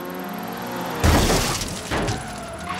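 Cars crash into each other with a loud bang.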